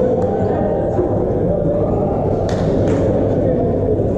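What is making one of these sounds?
Young men shout and cheer in a large echoing hall.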